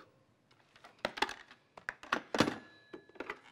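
A telephone receiver clatters down onto its cradle.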